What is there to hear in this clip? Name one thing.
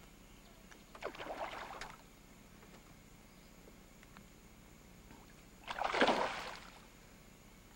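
A fish thrashes and splashes at the water's surface.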